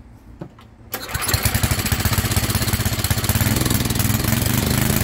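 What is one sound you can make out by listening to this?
A small generator engine starts and runs with a loud, steady roar.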